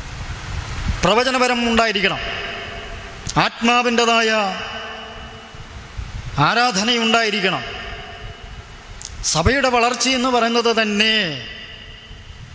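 A man sings slowly into a microphone in long phrases with pauses between them.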